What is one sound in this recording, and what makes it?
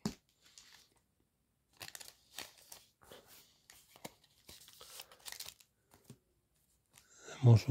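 A foil wrapper crinkles as it is handled.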